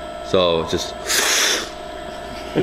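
A man loudly slurps coffee from a spoon.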